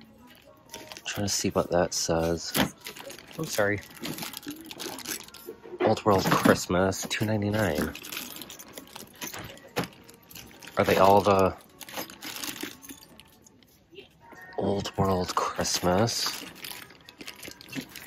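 Plastic bags crinkle and rustle in a hand.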